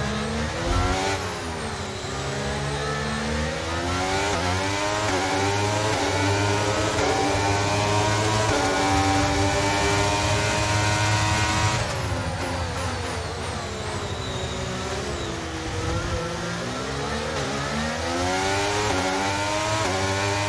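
A racing car engine screams loudly, dropping in pitch as it slows and rising again as it speeds up.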